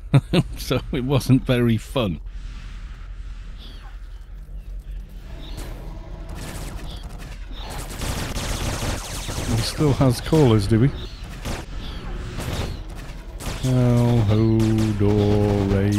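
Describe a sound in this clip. Magic blasts whoosh and crackle in a game battle.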